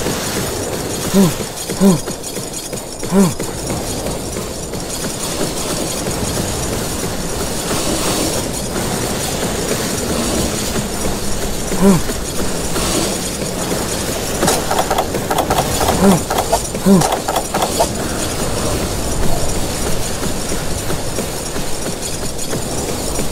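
Footsteps patter quickly across sand.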